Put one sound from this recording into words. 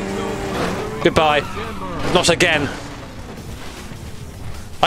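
A car crashes and scrapes over rough ground.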